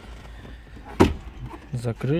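A plastic panel knocks once with a sharp click.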